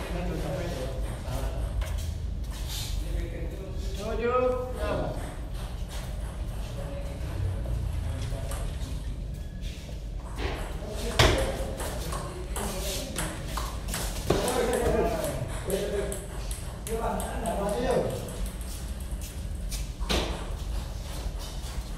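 Men talk and call out nearby.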